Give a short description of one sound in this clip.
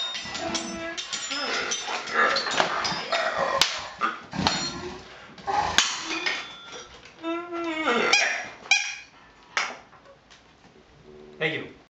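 Small metal bowls clink and ring as they are struck by hand.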